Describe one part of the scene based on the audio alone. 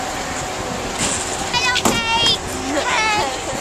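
A boy laughs and talks excitedly close by.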